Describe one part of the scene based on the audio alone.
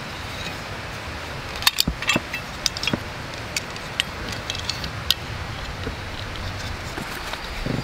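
A folding knife clicks as it is opened and handled.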